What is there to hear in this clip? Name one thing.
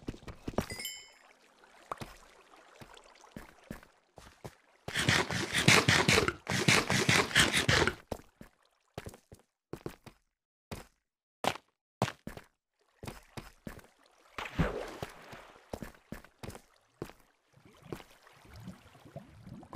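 Footsteps crunch on stone in a cave.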